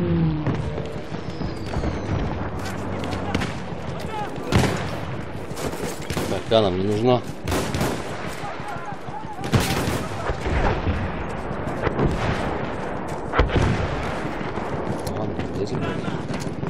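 Gunfire crackles in the distance.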